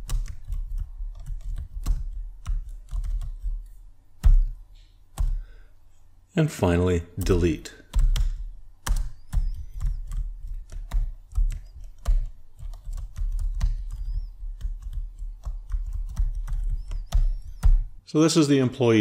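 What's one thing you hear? Keys clack quickly on a computer keyboard.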